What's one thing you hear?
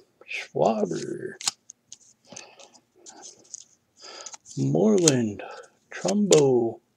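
Glossy trading cards slide and rub against each other as they are flipped through.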